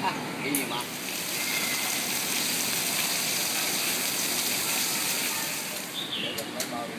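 A fountain's water splashes steadily.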